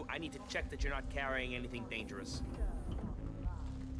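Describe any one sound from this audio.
An elevator door slides shut.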